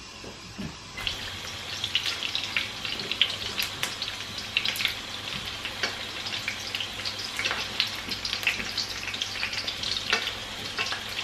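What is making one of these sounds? Oil sizzles and crackles as pastries fry in a pan.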